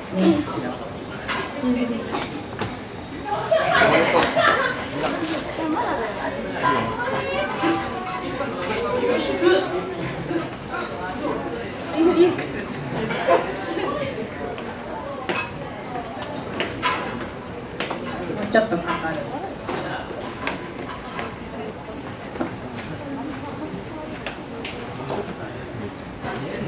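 A young woman talks over a microphone in an echoing hall.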